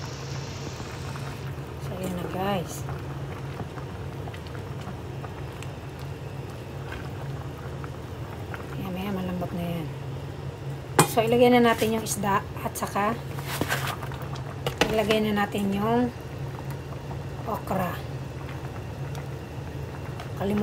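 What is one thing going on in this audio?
A pot of stew simmers and bubbles steadily.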